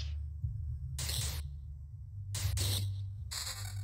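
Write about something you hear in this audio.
A sword strikes a beast with short sharp hits.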